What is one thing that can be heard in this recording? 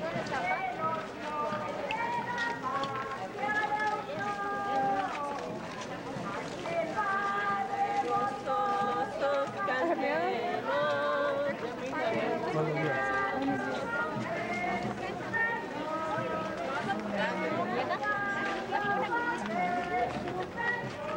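A crowd of men and women sings a slow hymn together outdoors.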